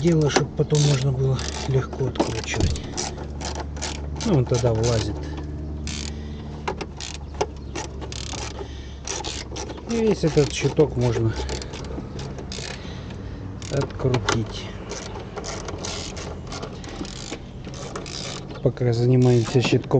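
A ratchet wrench clicks in quick bursts.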